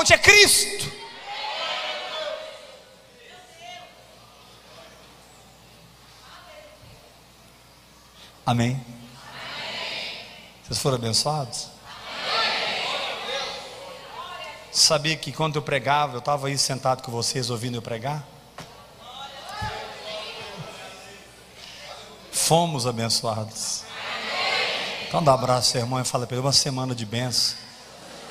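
A man speaks with animation through a microphone in an echoing hall.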